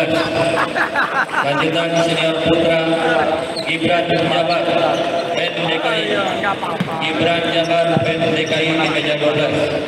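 A table tennis ball clicks back and forth on bats and a table.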